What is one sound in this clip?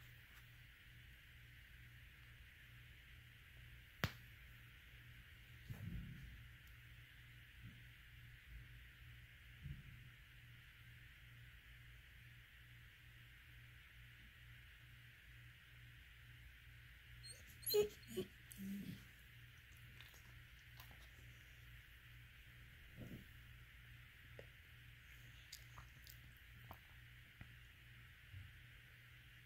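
A hand softly rubs a dog's fur.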